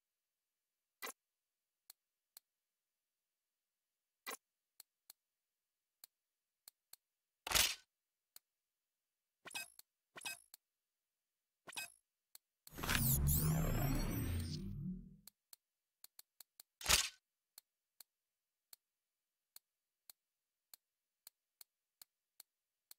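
Short menu clicks and blips sound one after another.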